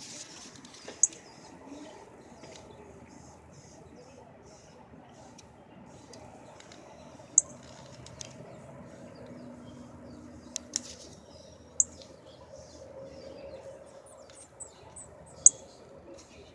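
A small bird chirps in short, sharp, high notes close by.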